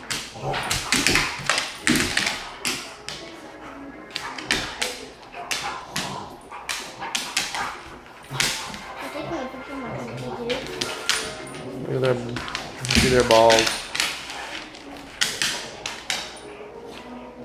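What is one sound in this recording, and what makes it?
Dogs' paws scrabble and thump on a dog bed.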